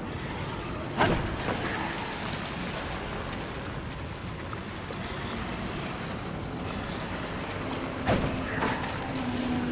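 Heavy boots thud onto stone as a figure lands from a climb.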